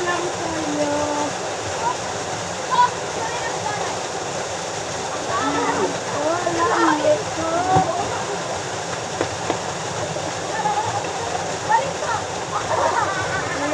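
Young people talk and call out with animation outdoors by a river.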